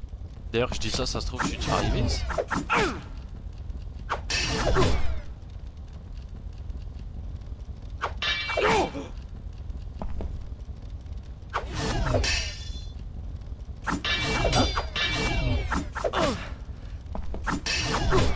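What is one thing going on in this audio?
Steel swords clash and ring.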